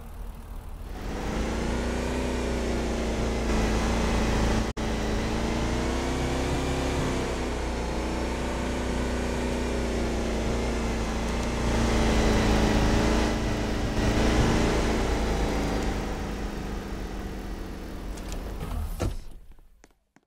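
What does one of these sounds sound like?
A sports car engine hums and revs.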